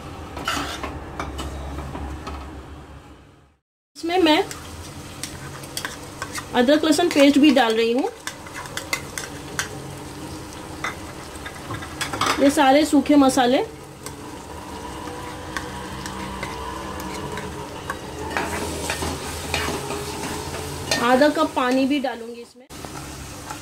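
A metal spoon scrapes and clatters against a metal pot while stirring.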